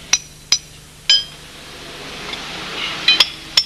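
A hammer strikes a metal chisel against stone with sharp ringing clinks.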